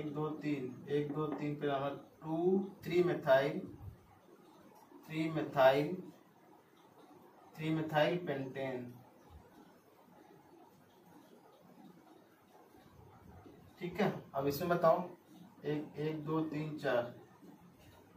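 A man speaks calmly and clearly nearby, explaining.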